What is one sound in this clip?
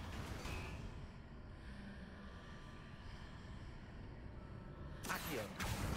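A heavy stone gate grinds slowly open.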